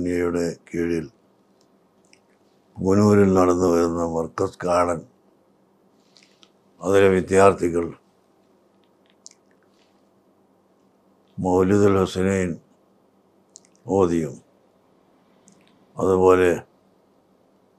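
An elderly man speaks slowly and calmly, close to a microphone, with long pauses.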